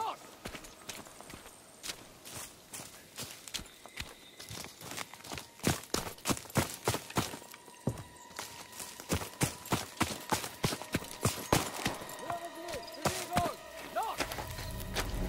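Footsteps crunch through undergrowth at a steady walking pace.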